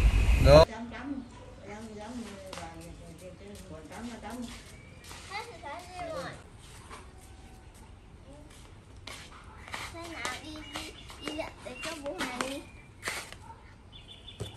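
A young girl talks with animation close by.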